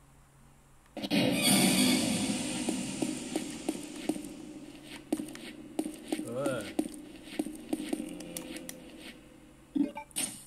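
Game sound effects and music play from a small phone speaker.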